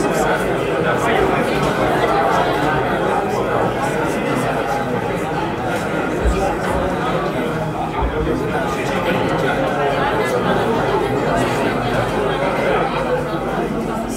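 A crowd of young men chatters loudly all around.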